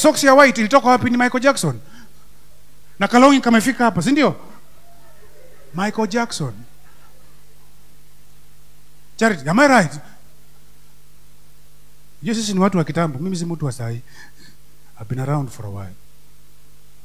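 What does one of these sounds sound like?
A man preaches with animation through a microphone, in short bursts with pauses.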